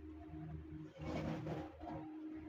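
Corn cobs tumble from a metal bowl into a sack.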